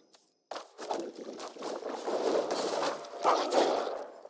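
A magical whooshing sound effect plays as a card transforms.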